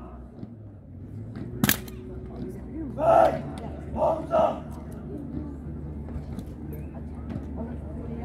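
A rifle clacks as a guard handles it.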